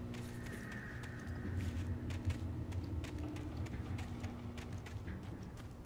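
Footsteps crunch on dry ground.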